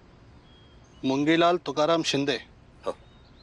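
An elderly man speaks pleadingly nearby.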